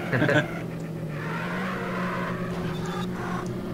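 Tyres squeal through a corner.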